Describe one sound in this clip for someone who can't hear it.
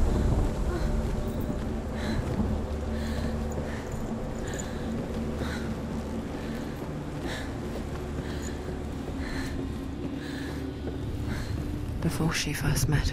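Footsteps thud steadily on wooden planks.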